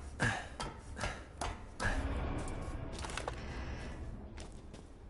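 Hands and boots knock on metal ladder rungs during a climb.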